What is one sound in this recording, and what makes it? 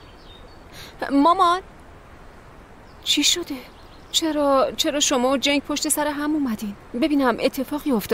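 A middle-aged woman speaks tensely close by.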